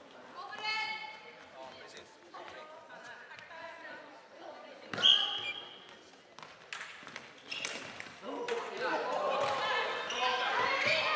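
Floorball sticks clack sharply against a ball and the floor.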